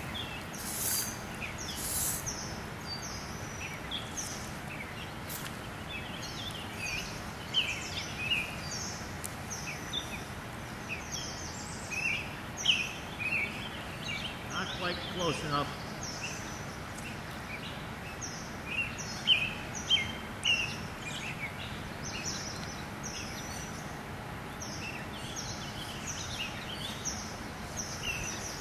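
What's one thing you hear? A fly line swishes through the air as it is cast.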